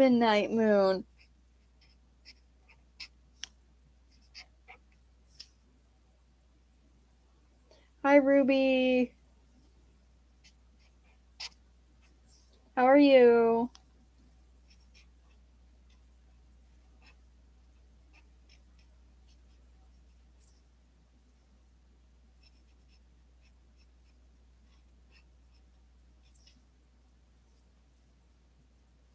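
Paper rustles softly under a hand.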